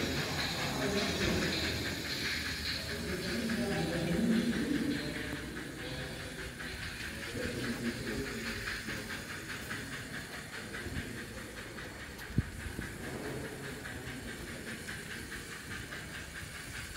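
A toy train rumbles and clicks steadily along its track.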